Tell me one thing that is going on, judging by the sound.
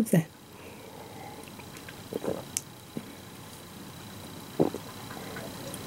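A middle-aged woman gulps down a drink.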